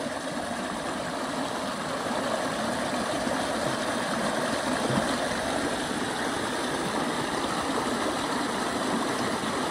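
Water rushes and splashes loudly close by.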